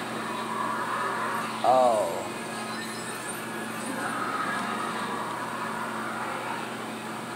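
Video game music and sound effects play from a television loudspeaker.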